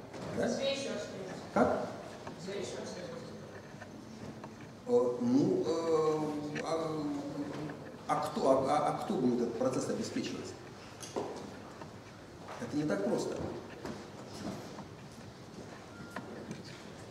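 A middle-aged man lectures with animation in a room with slight echo.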